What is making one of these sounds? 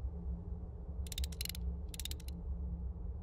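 A metal latch slides across a wooden door with a clunk.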